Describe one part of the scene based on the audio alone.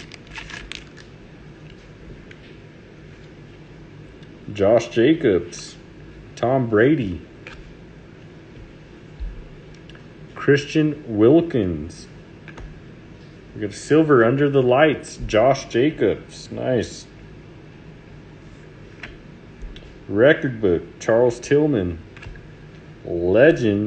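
Trading cards slide and flick against each other.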